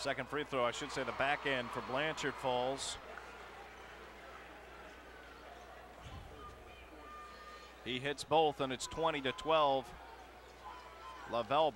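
A large crowd murmurs in an echoing arena.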